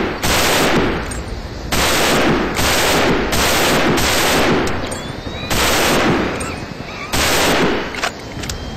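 A rifle fires in bursts, each one echoing away.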